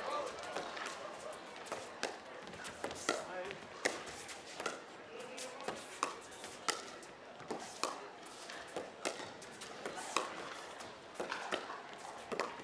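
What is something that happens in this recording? Paddles hit a plastic ball with sharp, hollow pops in a quick rally.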